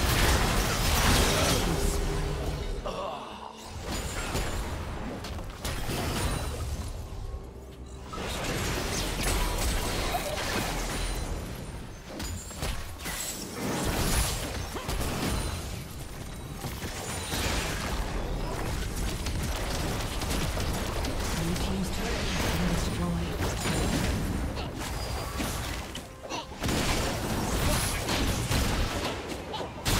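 Spell effects in a video game crackle and burst in a fight.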